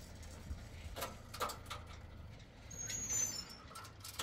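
Metal clanks as a man handles a truck's tailgate.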